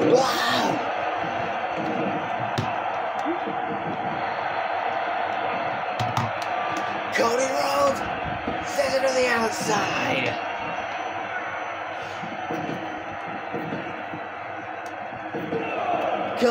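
A crowd cheers and roars steadily in a large arena.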